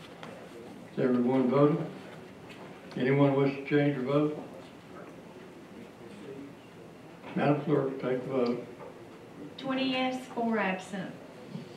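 A man speaks calmly through a microphone in a large room, in short bursts.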